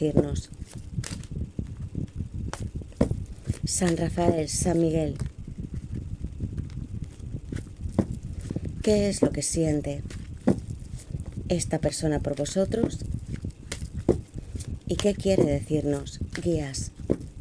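Playing cards are shuffled with soft slaps and flicks.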